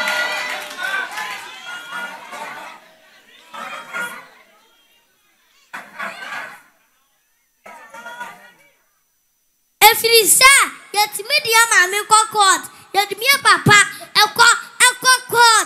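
A young boy speaks loudly and with animation into a microphone.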